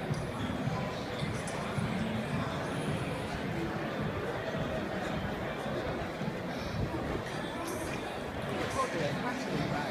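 A crowd murmurs and chatters throughout a large open stadium.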